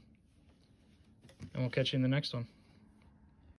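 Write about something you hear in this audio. A card is laid down lightly on a wooden table.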